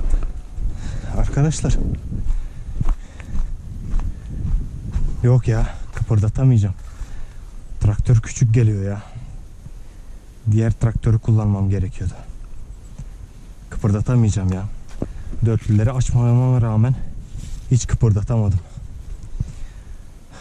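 A man talks close by, calmly, in short bursts.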